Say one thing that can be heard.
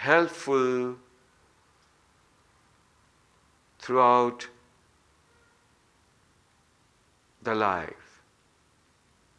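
A middle-aged man chants short, drawn-out syllables close by, with long silent pauses between.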